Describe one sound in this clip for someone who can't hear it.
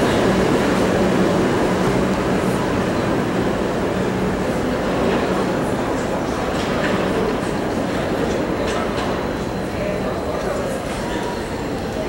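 Steel wheels clatter and squeal on the rails.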